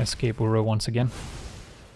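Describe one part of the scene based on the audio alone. A magical burst crackles and shimmers.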